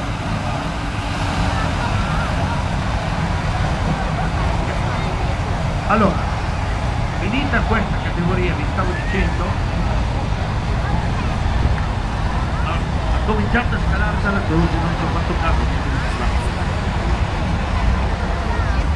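A tractor engine roars loudly as it pulls a heavy sled.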